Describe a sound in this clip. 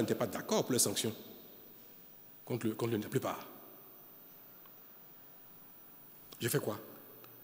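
A man speaks calmly and deliberately into a microphone, with pauses between phrases.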